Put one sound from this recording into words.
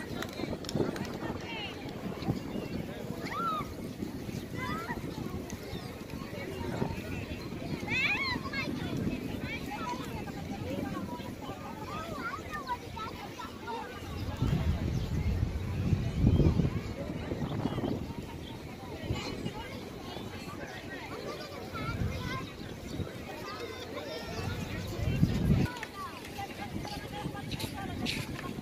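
A crowd of people chatters and calls out in the distance outdoors.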